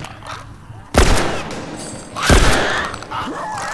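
Gunshots bang loudly twice.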